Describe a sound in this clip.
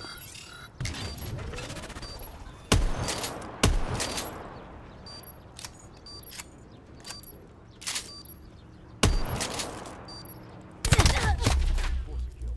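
Gunshots bang with a sharp echo.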